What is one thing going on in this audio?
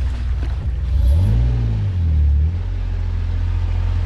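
Water splashes under tyres.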